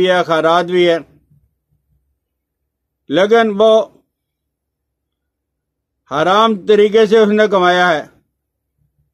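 An elderly man chants slowly in a melodic voice, close to the microphone, with pauses between phrases.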